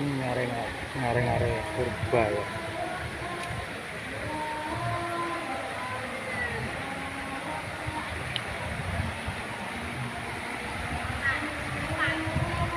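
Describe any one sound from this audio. Shallow water trickles over stones in a stream.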